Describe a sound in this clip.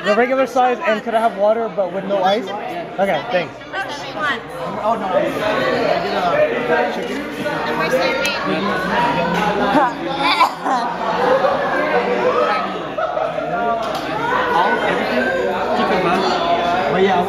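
Several people chatter in a busy room.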